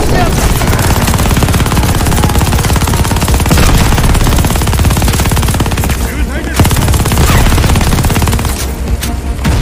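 A heavy machine gun fires rapid, rattling bursts.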